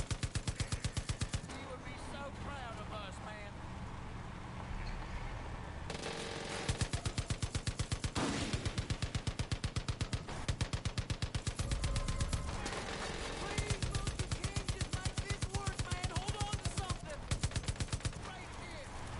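A mounted machine gun fires in rapid bursts.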